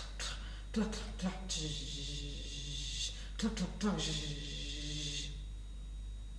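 A woman sings softly close to a microphone.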